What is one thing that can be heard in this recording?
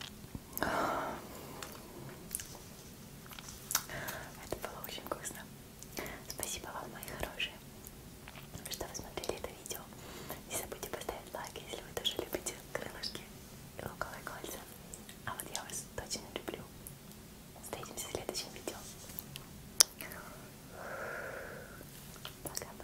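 A young woman speaks softly and close to a microphone.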